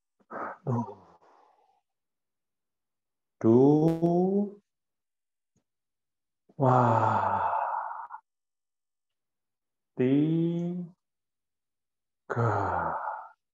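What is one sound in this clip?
A young man sings short held notes, heard close through an online call.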